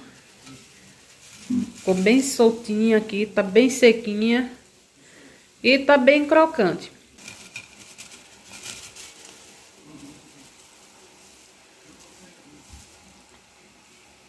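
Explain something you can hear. Crisp fried strands rustle and crackle as a hand stirs through them.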